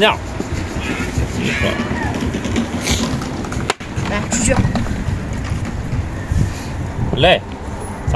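Game pieces click against a board.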